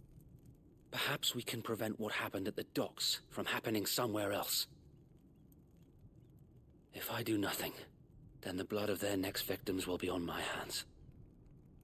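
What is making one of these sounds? A young man speaks calmly and earnestly.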